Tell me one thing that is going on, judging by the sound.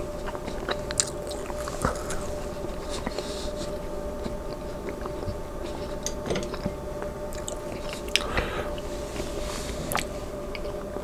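A fork clinks and scrapes against a plate.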